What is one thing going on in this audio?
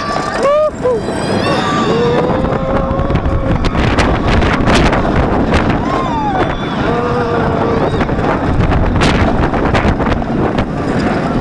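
Wind rushes loudly past the riders.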